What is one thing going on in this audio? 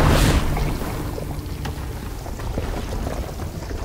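A deep explosion booms and rumbles away.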